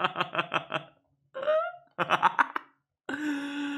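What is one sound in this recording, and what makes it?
A young man laughs in bursts close to a microphone.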